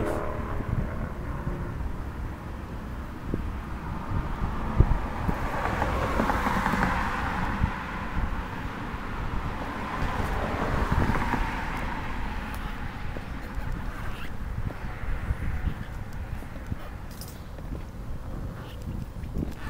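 Wind rumbles and buffets against the microphone outdoors.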